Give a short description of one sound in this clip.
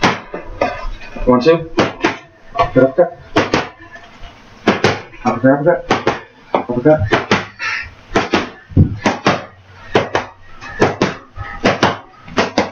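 Boxing gloves smack against padded mitts in quick bursts.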